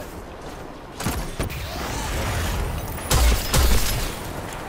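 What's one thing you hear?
Gunshots crack loudly in quick bursts.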